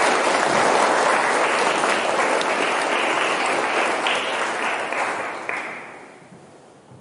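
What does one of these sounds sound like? An audience applauds in a large echoing hall, then the clapping dies away.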